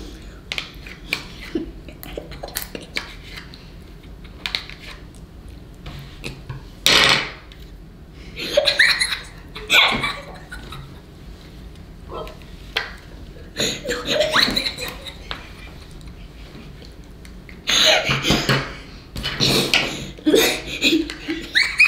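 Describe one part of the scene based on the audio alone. A plastic spoon scrapes and clicks against a plastic cup.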